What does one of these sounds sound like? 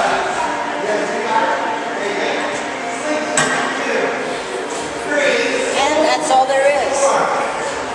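A man talks calmly and clearly, close by, in an echoing room.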